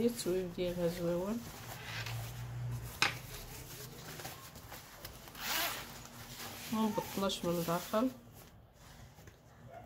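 Fabric rustles and crinkles as it is handled.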